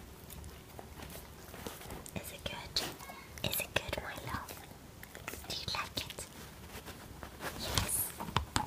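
A dog gnaws a hard bone with scraping, knocking clicks.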